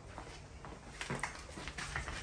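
A glass door swings open.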